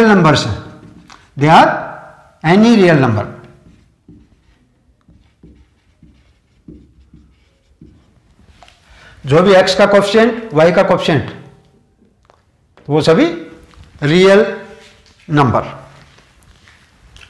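A middle-aged man speaks clearly and with emphasis, close to a microphone.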